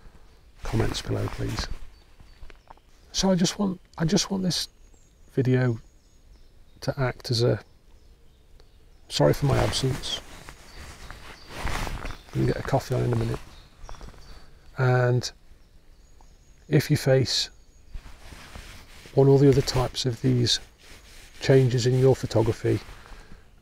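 A middle-aged man talks calmly and close to a microphone, outdoors.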